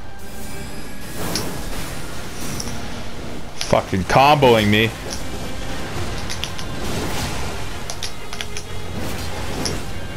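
Swords clash and swish in a fight.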